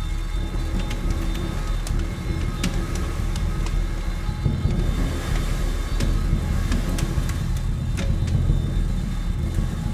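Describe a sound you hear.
Cymbals ring and shimmer with light strikes.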